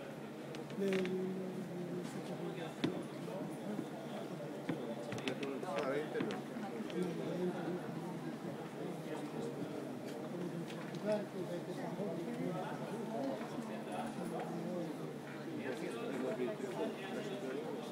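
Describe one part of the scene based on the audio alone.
Young children chatter and call out in a large echoing hall.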